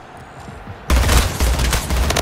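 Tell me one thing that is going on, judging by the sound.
Gunshots crack loudly in rapid bursts.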